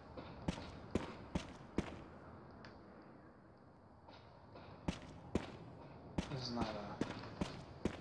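Footsteps thud slowly on a hard floor in a quiet, echoing room.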